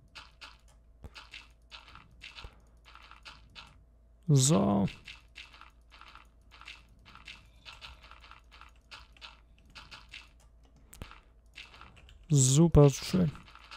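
Blocks of dirt crunch as they are dug out in quick repeated bursts.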